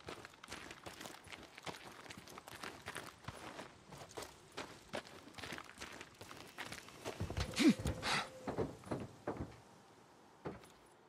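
Footsteps crunch quickly on gravel and dirt.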